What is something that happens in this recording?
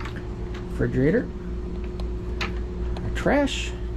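A cabinet door latch clicks open.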